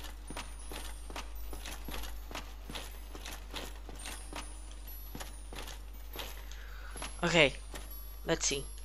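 Armored footsteps clank in a steady, quick rhythm.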